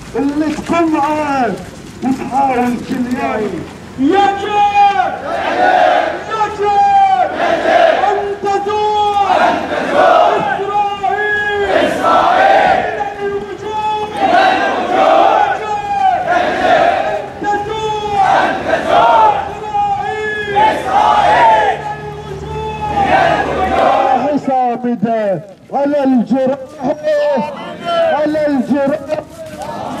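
A crowd of men chants rhythmically outdoors.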